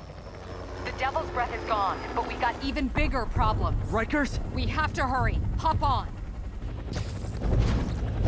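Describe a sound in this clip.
A helicopter rumbles overhead.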